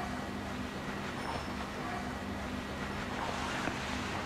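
A towel rubs softly over a man's face.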